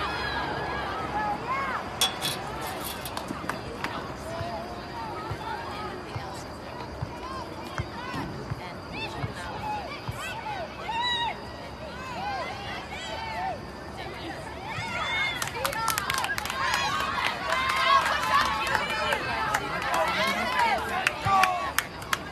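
A crowd of spectators shouts and cheers close by outdoors.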